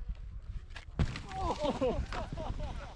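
A skier crashes into the snow with a thud.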